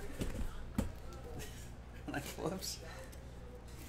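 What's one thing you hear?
A cardboard box scrapes and thumps as it is handled.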